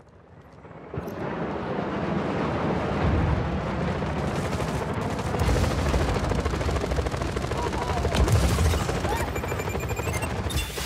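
A large propeller plane roars loudly overhead.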